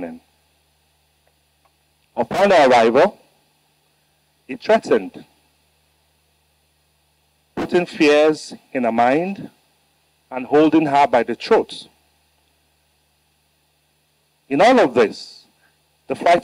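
A middle-aged man speaks slowly and firmly into a microphone, with long pauses.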